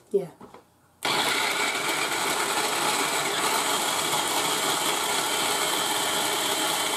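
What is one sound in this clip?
A food processor whirs loudly and steadily, chopping food.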